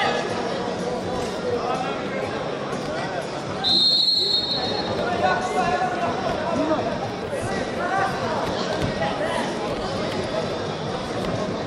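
A large crowd murmurs and calls out in an echoing hall.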